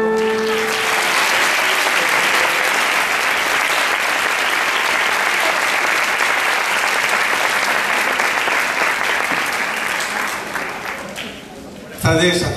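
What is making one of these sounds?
An audience applauds loudly in a large hall, then the clapping fades.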